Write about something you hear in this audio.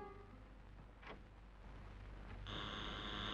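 A door bolt slides and clicks shut.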